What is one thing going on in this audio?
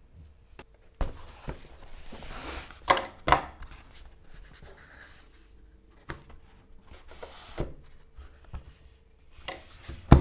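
A leather tool roll rustles as hands unroll it.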